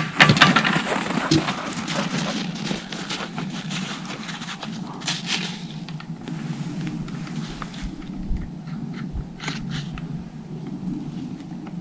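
A bucket rattles and clanks.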